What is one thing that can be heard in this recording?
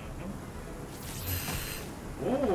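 A laser beam zaps with a sharp electronic burst.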